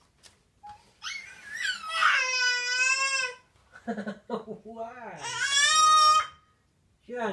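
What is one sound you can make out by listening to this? A baby squeals loudly at high pitch, close by.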